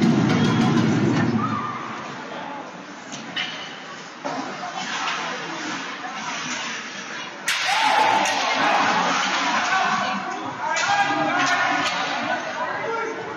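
A crowd murmurs and cheers in a large echoing arena.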